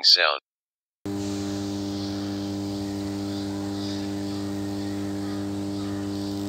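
A large electrical transformer hums with a steady, deep drone.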